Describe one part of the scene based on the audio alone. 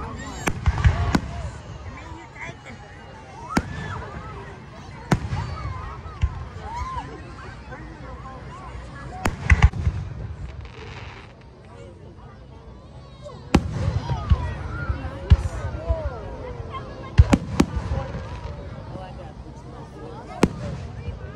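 Fireworks burst with sharp bangs and booms.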